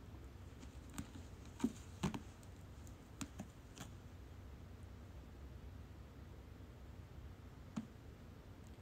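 A cat scratches and scrabbles against a rope-wrapped post.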